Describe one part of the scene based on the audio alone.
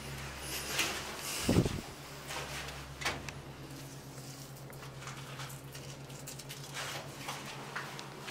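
Hands rustle and bump against something close by.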